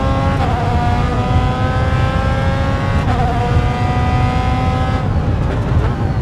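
A racing car engine screams at high revs, climbing steadily in pitch.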